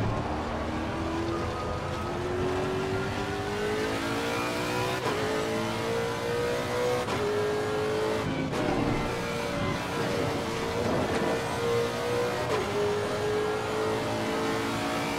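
A racing car engine roars, rising in pitch through each gear and dropping sharply at every gear change.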